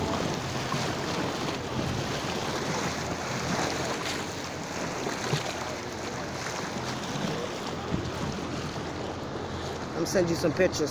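Water splashes and washes against a moving boat's hull.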